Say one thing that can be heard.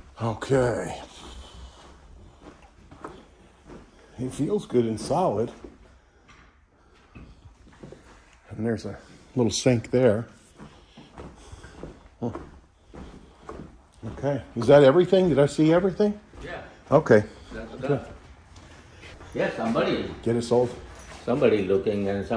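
A middle-aged man talks calmly close by, in an echoing empty room.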